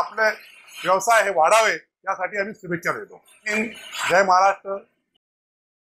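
A middle-aged man speaks calmly and warmly, close to a clip-on microphone.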